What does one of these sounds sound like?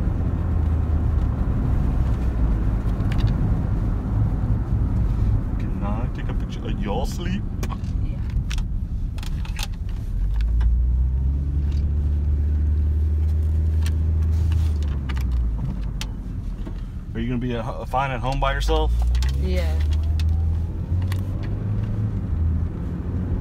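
A car engine hums low and steady with road rumble.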